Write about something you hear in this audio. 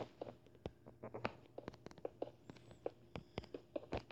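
Blocks are placed with soft, quick taps.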